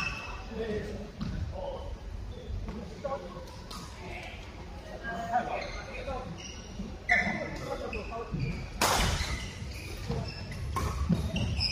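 Men talk and call out across a court.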